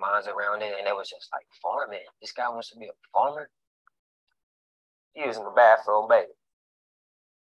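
A man speaks calmly and close, heard through an online call.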